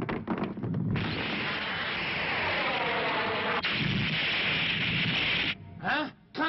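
A rocket engine roars loudly.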